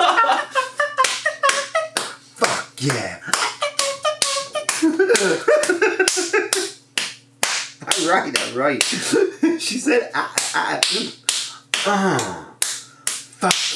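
A second man chuckles softly nearby.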